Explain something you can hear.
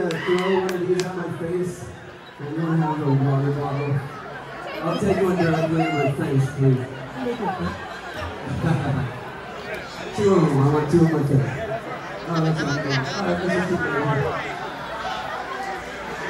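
A male singer sings loudly through a microphone.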